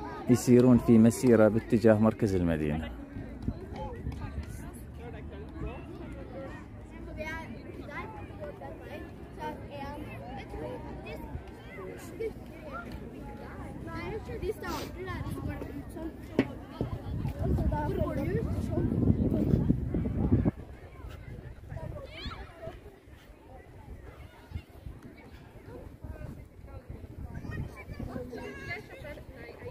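A crowd of people chatters at a distance outdoors.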